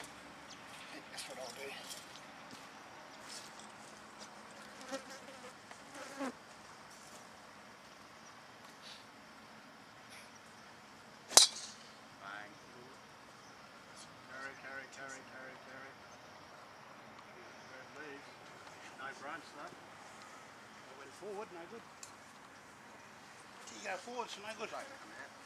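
Men talk casually nearby outdoors.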